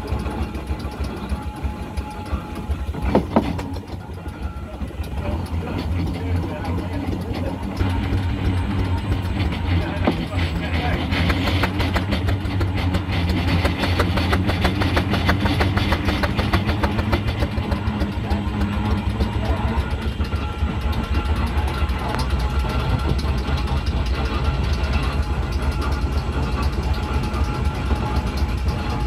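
Tyres roll over tarmac.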